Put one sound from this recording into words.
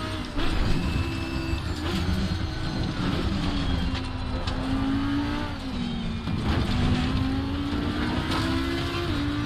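Tyres squeal under hard cornering.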